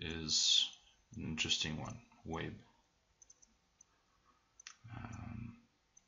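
A man speaks close to a microphone, calmly, in short phrases.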